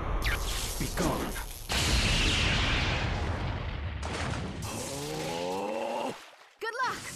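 Electricity crackles and sizzles.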